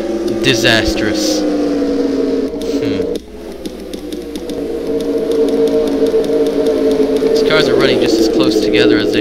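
Race car engines roar steadily as a pack of cars speeds past.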